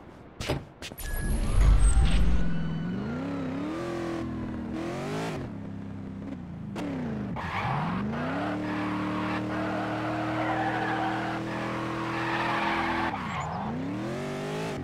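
A car engine starts with a roar and revs up and down through gear changes.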